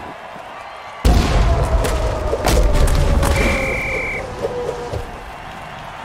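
Players in armour crash together with a heavy, booming thud.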